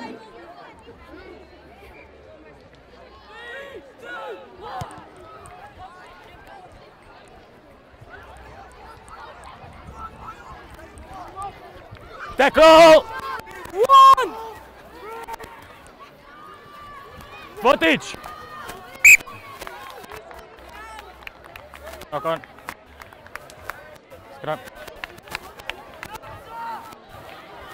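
A crowd of spectators shouts and cheers outdoors, with loud bursts of excited yelling.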